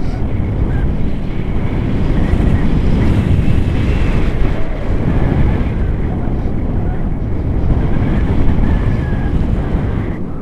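A young woman talks close by, partly drowned by the wind.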